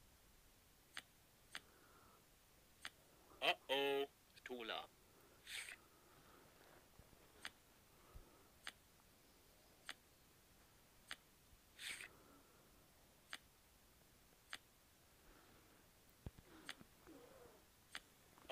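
Playing cards snap down onto a table with short, sharp clicks.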